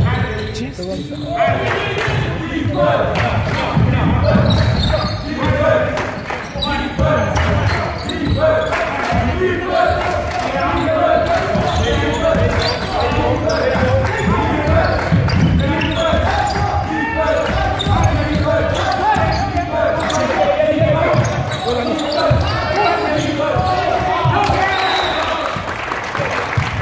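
Basketball shoes squeak on a wooden floor.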